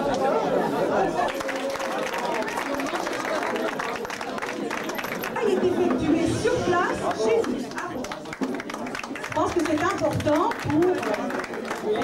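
People in an audience clap their hands.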